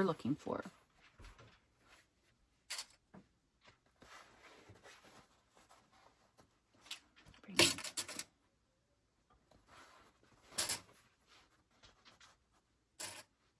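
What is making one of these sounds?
Fabric rustles and slides over a table.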